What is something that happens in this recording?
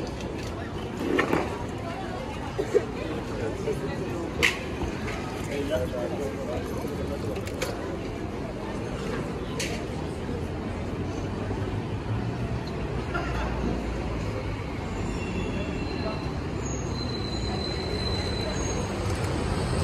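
Traffic hums steadily along a busy city street.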